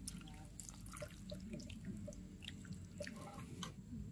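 Soup pours and splashes into a bowl.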